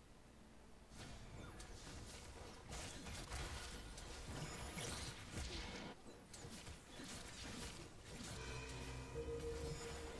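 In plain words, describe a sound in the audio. Game battle effects crash and clash in quick bursts.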